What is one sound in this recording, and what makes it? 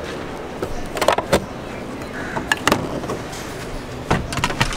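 A car door unlatches with sharp clicks and swings open.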